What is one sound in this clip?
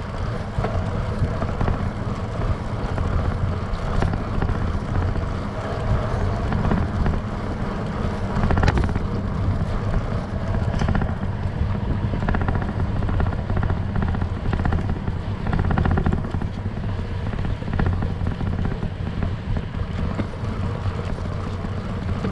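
Bicycle trailer wheels roll and rattle over pavement.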